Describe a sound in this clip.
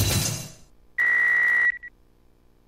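A bright electronic tone rings out and stops.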